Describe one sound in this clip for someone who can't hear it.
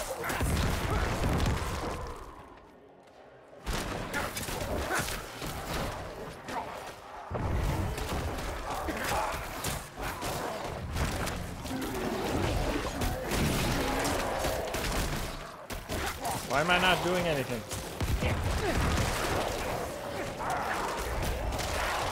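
Game combat effects clash and thud with bursts of spell blasts.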